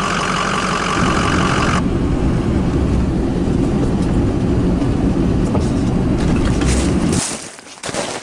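A car engine hums.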